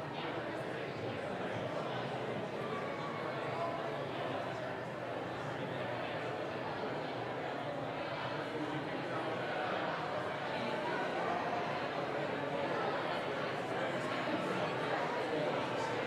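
Several men talk calmly in a large echoing hall.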